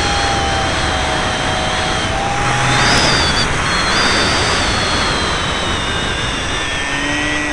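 A small model aircraft motor whines close by, its pitch rising and falling.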